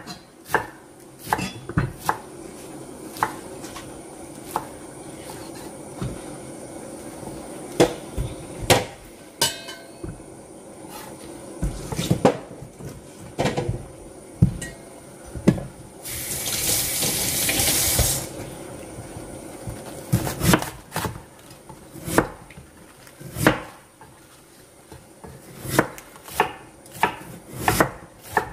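A knife chops through cabbage and knocks on a wooden board.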